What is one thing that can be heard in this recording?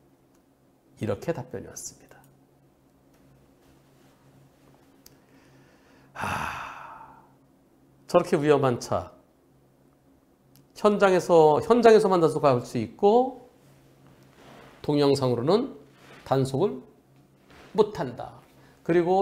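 A middle-aged man talks calmly and clearly into a close microphone, in short phrases with pauses.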